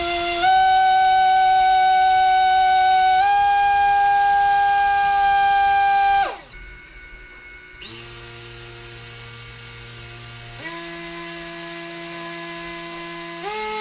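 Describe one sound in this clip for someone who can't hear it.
An electric motor whines loudly, its pitch stepping up and down.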